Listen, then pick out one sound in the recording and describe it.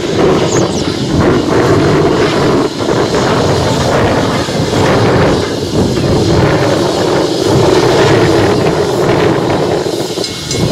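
Train wheels rumble and clatter along the rails.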